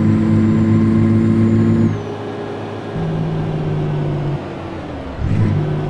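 A truck engine hums steadily, changing pitch as gears shift.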